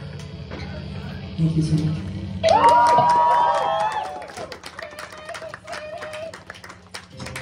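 An electric bass guitar plays low notes loudly.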